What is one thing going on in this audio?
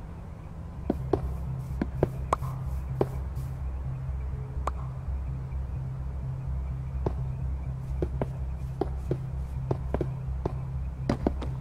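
Wooden blocks knock softly as they are set in place.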